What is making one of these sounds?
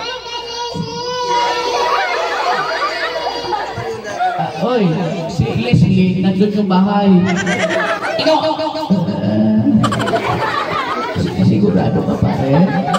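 A man speaks with animation into a microphone, heard loud through a loudspeaker.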